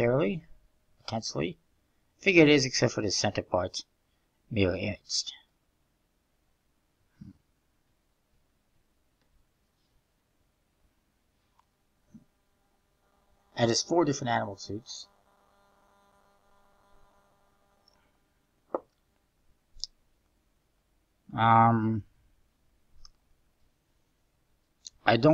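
A young man talks calmly and close to a microphone, in short bursts with pauses.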